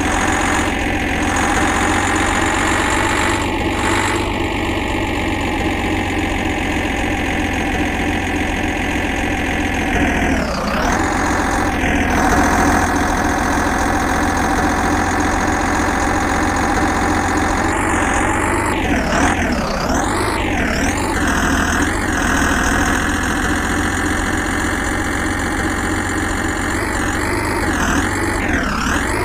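A heavy truck engine drones steadily as it climbs.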